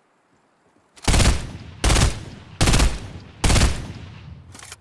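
A rifle fires several loud shots.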